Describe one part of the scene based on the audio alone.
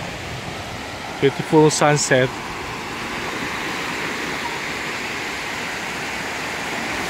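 Small waves wash steadily onto a sandy shore outdoors.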